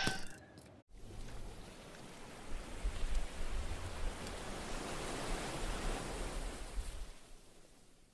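Waves wash softly against a sandy shore.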